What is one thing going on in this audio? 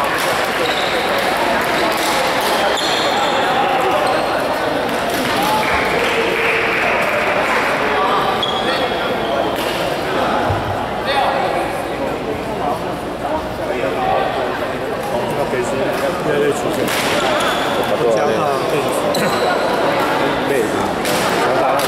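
Many people talk at once in the background of a large echoing hall.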